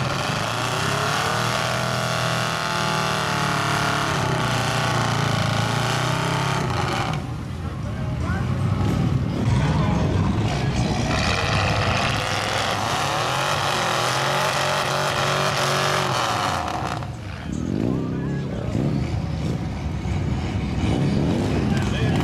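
A truck engine roars and revs hard.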